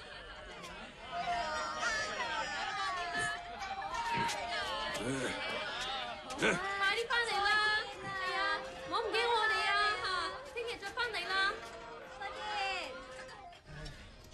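A crowd of men and women shouts and cheers with excitement nearby.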